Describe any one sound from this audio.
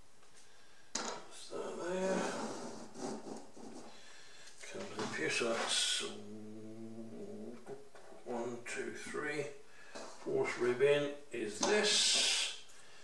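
An older man speaks calmly up close.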